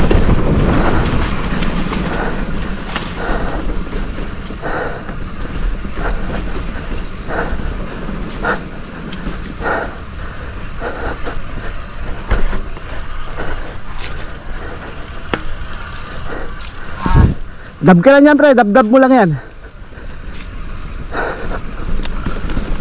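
Knobby bike tyres crunch and roll over a dirt trail.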